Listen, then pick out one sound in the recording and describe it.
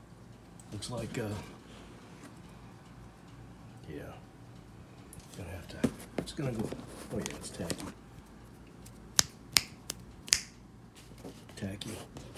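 A hand rustles a cloth cap close by.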